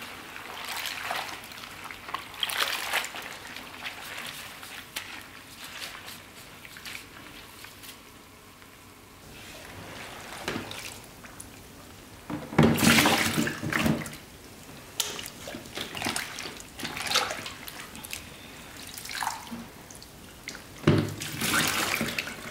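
Gloved hands squish and toss wet vegetables in a liquid brine.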